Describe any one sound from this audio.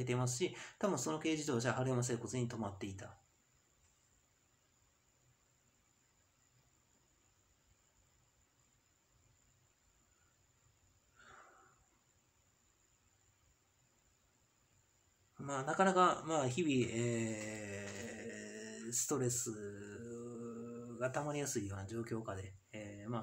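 A young man speaks calmly and close to a microphone, with pauses.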